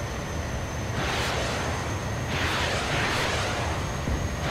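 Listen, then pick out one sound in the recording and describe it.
Rockets fire with a whooshing hiss.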